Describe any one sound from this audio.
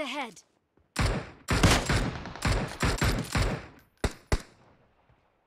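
Rifle shots crack loudly and echo.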